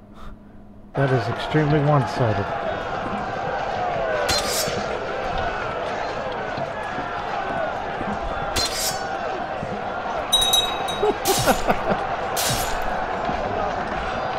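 Swords clash and armour rattles in a busy battle.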